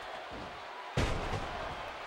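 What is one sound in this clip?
A heavy body thuds onto a wrestling mat.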